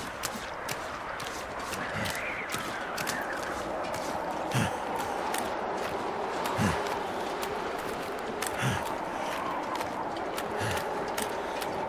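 Footsteps crunch steadily on ice.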